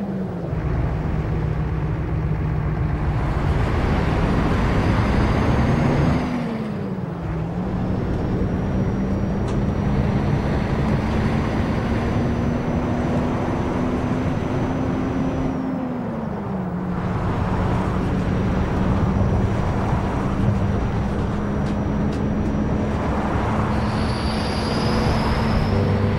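A bus engine hums steadily, rising and falling in pitch as the gears change.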